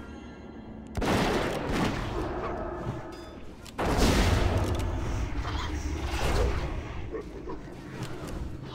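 Game combat sounds clash and thud.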